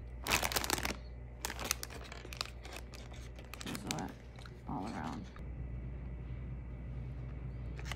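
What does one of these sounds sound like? A foil bag crinkles and rustles as it is handled.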